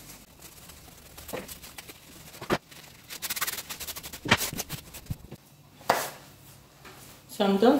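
Satin fabric rustles and crinkles as it is handled.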